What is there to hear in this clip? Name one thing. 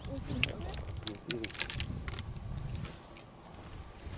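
Shoes step softly on short grass.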